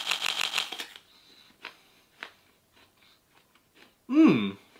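A young man chews an apple noisily.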